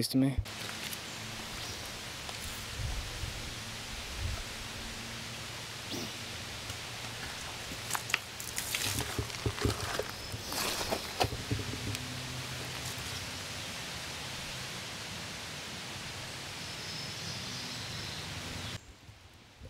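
A shallow stream flows and trickles steadily outdoors.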